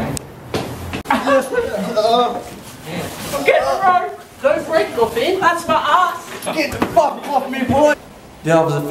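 Young people laugh and shout.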